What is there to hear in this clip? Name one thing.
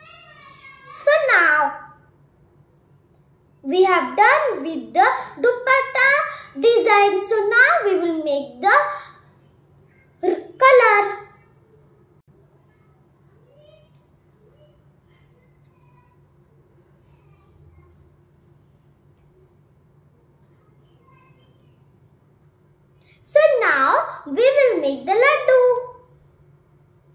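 A young child speaks close by.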